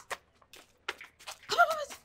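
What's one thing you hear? Footsteps shuffle along.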